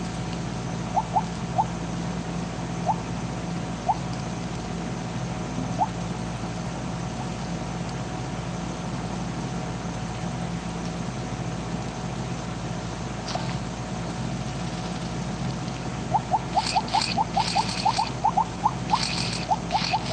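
Short bright game blips chime, sometimes quickly in a run.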